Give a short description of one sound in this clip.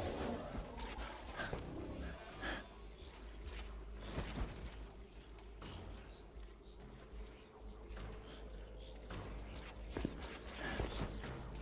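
Heavy footsteps thud and crunch on stony ground.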